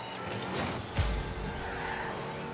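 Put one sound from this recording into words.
A ball thumps as a car hits it.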